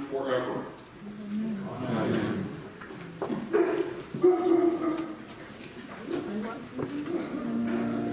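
A choir sings together in a large echoing hall.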